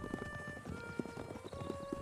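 Horses gallop over open ground.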